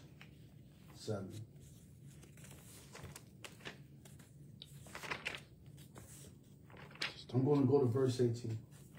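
A man speaks briefly and calmly close by.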